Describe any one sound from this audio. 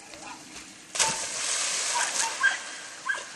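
A dog splashes heavily into water.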